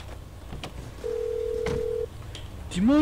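A phone gives a steady dialing tone.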